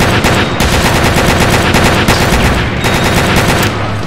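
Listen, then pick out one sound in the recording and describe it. A heavy gun fires rapid shots.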